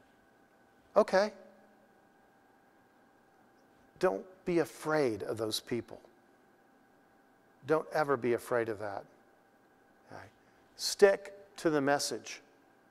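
A middle-aged man speaks calmly into a close microphone, in short phrases with pauses.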